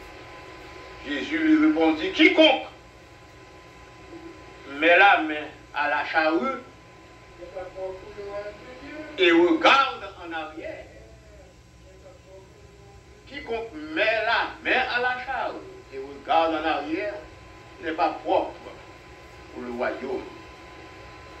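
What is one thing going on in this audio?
An elderly man preaches into a microphone with emphatic pauses, his voice carrying through a loudspeaker.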